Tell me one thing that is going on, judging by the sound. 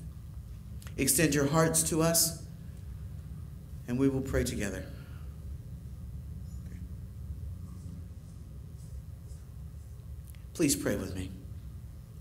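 A man speaks slowly and solemnly into a microphone, with long pauses.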